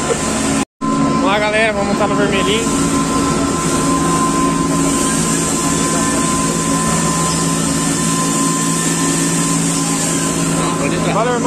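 Water sprays from a pressure washer wand.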